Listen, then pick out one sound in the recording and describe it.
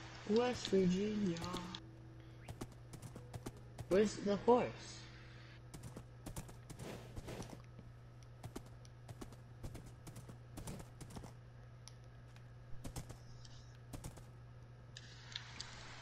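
Hooves clop as a horse walks along.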